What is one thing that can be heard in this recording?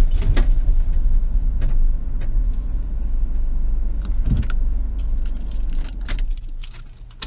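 A car engine rumbles low, heard from inside the car.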